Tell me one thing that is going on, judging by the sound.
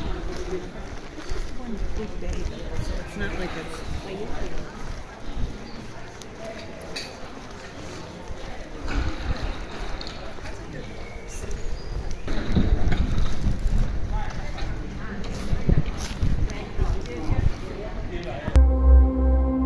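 Men and women chat indistinctly at a distance in a busy street.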